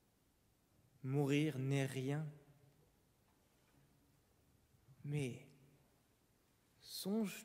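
A man sings in short phrases in a large echoing hall.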